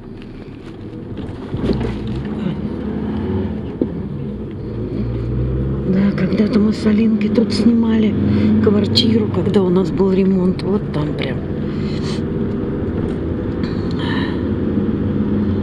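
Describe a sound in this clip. A vehicle's engine hums steadily from inside as it drives along.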